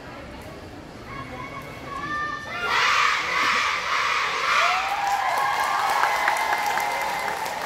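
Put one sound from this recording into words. A marching band's brass swells in and plays loudly in a large echoing hall.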